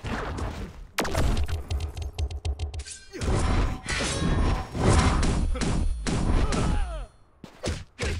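Magic blasts whoosh and crackle loudly.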